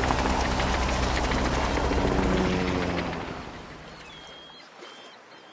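Cheerful game music plays, then fades away.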